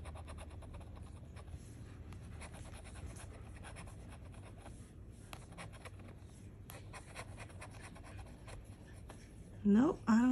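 A metal edge scrapes rapidly across a scratch card.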